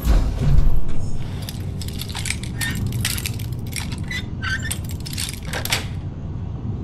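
Metal picks scrape and click inside a lock.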